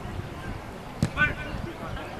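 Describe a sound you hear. A soccer ball is kicked with a thud.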